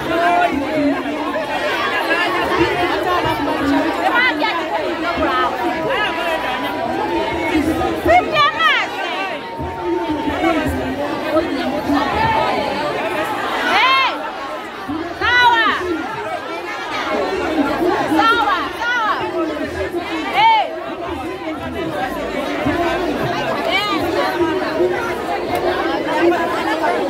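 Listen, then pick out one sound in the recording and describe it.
A large crowd of young people talks over one another outdoors.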